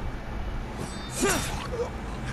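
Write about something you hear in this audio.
A sword swishes through the air.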